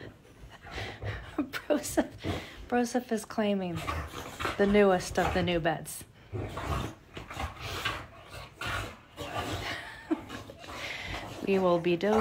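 A dog whines in high, wavering cries.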